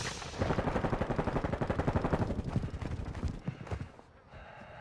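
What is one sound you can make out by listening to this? A rifle fires rapidly in quick bursts.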